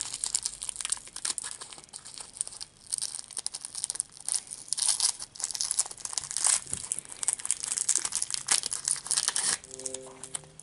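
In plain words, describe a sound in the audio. Plastic wrapper crinkles loudly and rustles close by.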